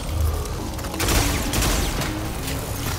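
A weapon fires with a loud crackling blast.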